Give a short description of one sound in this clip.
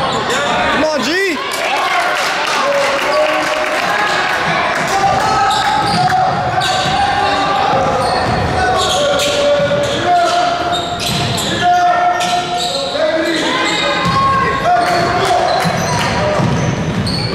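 Spectators of mixed ages chatter and call out from the stands.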